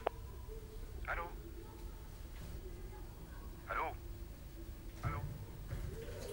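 A middle-aged man speaks quietly into a telephone.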